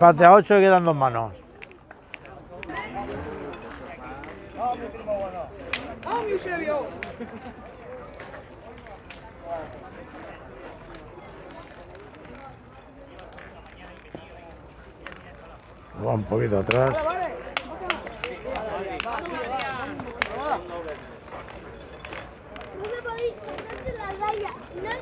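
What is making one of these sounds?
Men and boys talk and call out nearby, outdoors.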